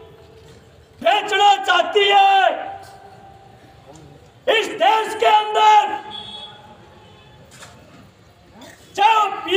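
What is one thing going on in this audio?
A man shouts loudly into a microphone in short bursts.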